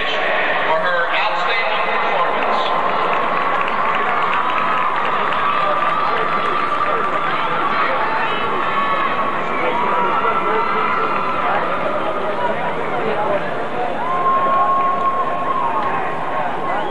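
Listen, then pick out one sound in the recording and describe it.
A marching band plays brass and woodwind instruments in a large open stadium.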